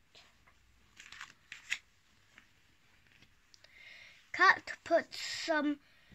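A page of a book turns with a papery rustle.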